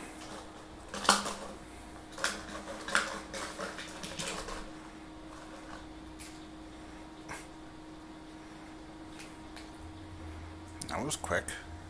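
A plastic bottle crinkles and rattles on the floor.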